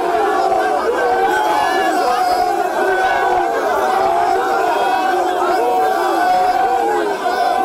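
A large crowd of men and women sings and chants loudly outdoors.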